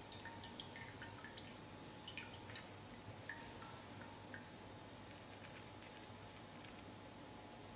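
Hot oil sizzles and crackles softly.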